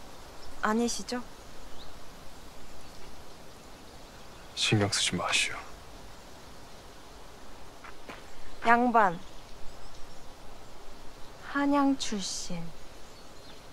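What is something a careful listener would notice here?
A young woman speaks in short, emotional bursts close by.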